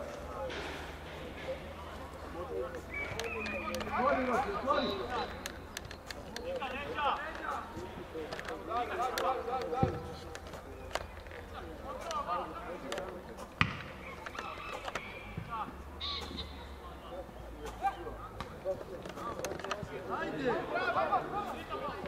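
Men shout to each other across a football pitch outdoors.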